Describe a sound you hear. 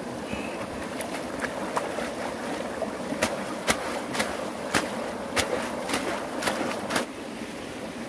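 A wicker basket knocks against stones in the water.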